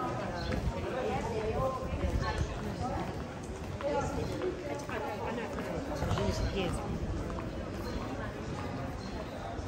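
Footsteps shuffle on stone paving.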